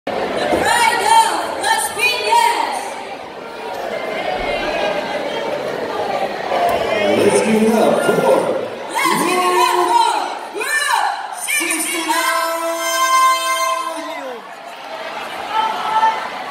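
Pop music plays loudly through loudspeakers in a large hall.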